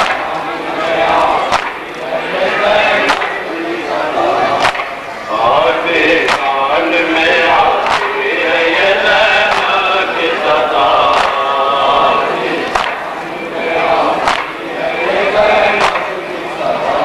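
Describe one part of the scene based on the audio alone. A crowd of men chants in unison.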